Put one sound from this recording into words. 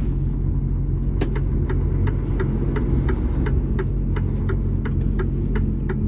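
A car drives by on the road.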